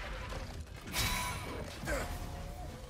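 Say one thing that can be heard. A weapon clashes against a shield with a sharp metallic hit.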